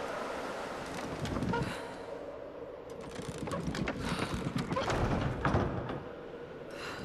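A heavy wooden wheel creaks and grinds as it is turned.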